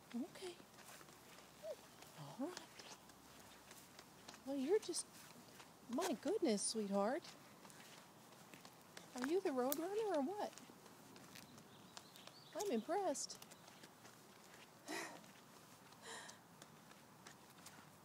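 A toddler's small shoes patter softly on pavement.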